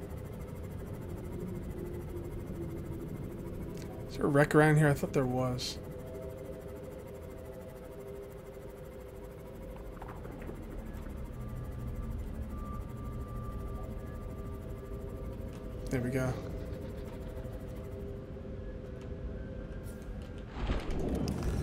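A submarine engine hums steadily underwater.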